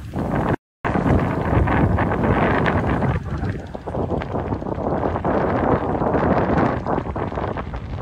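Gentle waves lap and splash around swimmers.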